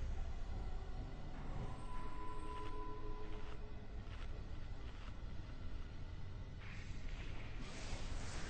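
Magical spell effects whoosh and crackle in a fight.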